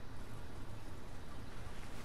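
A character splashes through water.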